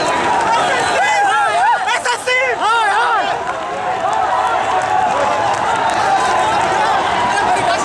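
Many feet run on pavement.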